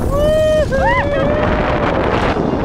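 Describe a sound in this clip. A young woman screams with excitement close by.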